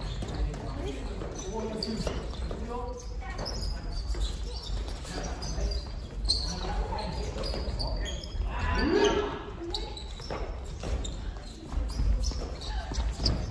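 Shoes squeak and thud on a wooden floor.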